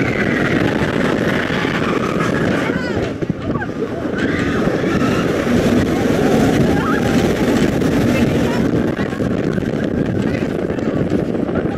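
A roller coaster rattles and rumbles loudly along its track.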